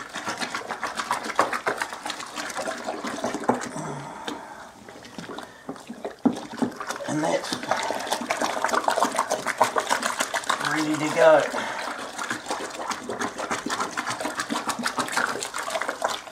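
A hand splashes and stirs wet grain in water.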